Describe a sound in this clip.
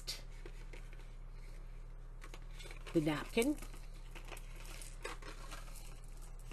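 Small items click and rustle softly as hands handle them.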